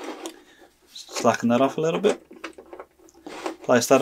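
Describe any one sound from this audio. Small metal bolts and washers clink as they are handled.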